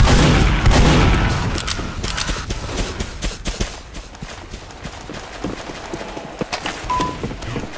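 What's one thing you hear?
Footsteps tap quickly across a hard floor.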